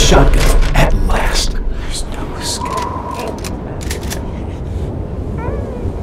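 A pistol clicks as it is handled.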